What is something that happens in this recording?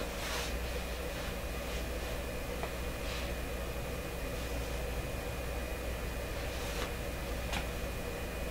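An electrical tester hums steadily.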